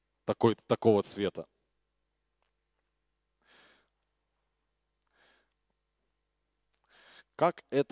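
A man speaks into a microphone, with long pauses.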